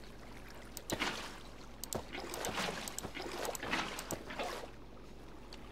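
Water splashes and gurgles as a bucket scoops it up.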